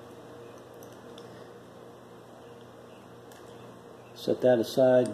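Small metal parts click faintly in a man's hands.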